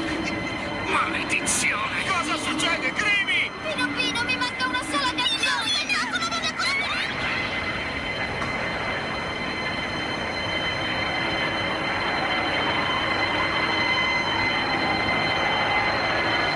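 Music plays from a phone's small speaker.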